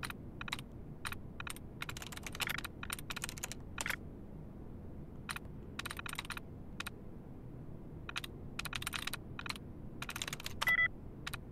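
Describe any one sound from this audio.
A computer terminal clicks and chatters in short bursts.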